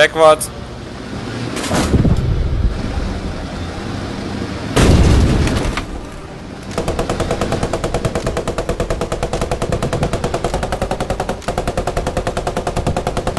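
A heavy vehicle's engine rumbles as it drives.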